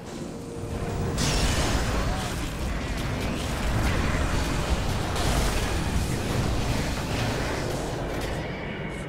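Fiery magic blasts roar and crackle during a fight.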